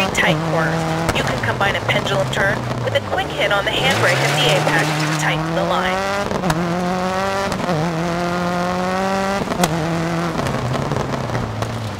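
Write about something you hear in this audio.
Tyres skid and scatter gravel on a loose surface.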